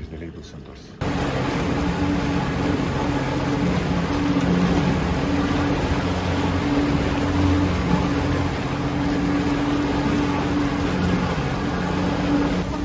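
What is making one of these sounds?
An outboard motor roars steadily.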